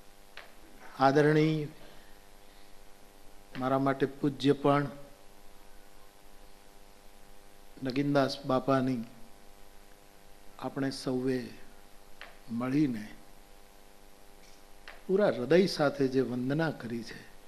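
An elderly man speaks slowly into a microphone, pausing between phrases.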